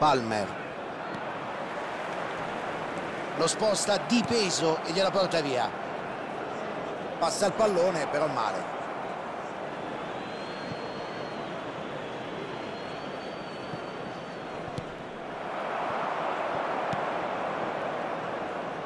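A stadium crowd murmurs and cheers steadily, swelling near the end.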